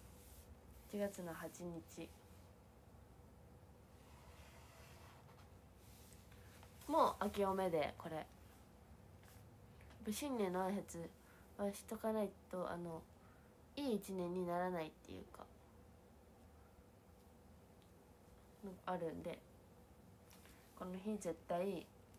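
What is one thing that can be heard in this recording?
A young woman speaks softly and calmly close by, in short bursts.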